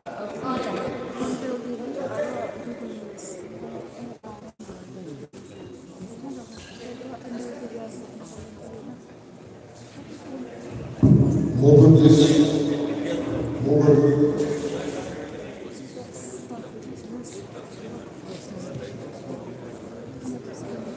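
A shuttlecock is struck with a racket.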